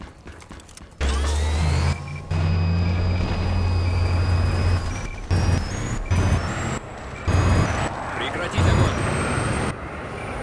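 A helicopter engine drones loudly with a deep, steady thrum.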